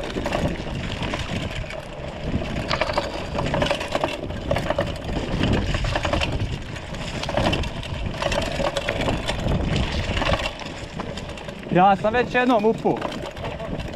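Bicycle tyres crunch and rattle over a bumpy dirt trail.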